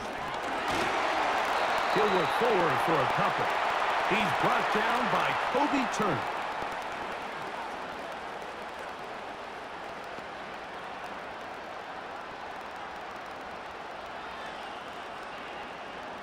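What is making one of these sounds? A stadium crowd roars loudly, then settles to a steady murmur.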